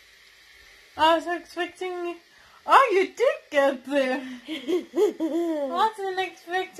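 A young woman laughs loudly close to a phone microphone.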